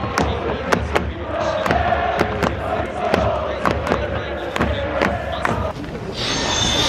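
A drum beats steadily among the crowd.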